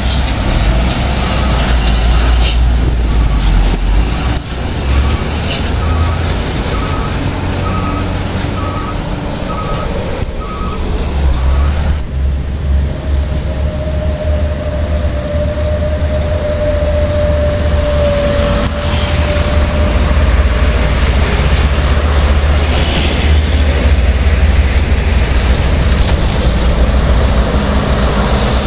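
Heavy truck engines rumble steadily close by outdoors.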